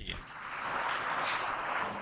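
A man speaks calmly through a clip-on microphone.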